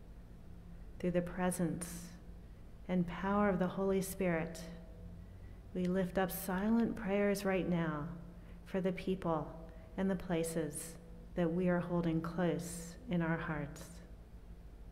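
An elderly woman speaks calmly through a microphone in a large echoing room.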